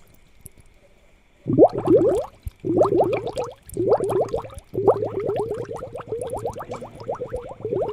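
Air bubbles burble steadily in water.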